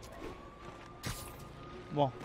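A figure lands on a rooftop with a heavy thud.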